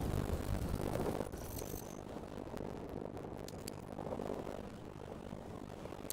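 Wind rushes past a parachute during a descent.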